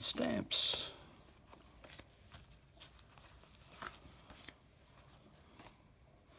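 Paper envelopes rustle and crinkle as they are handled.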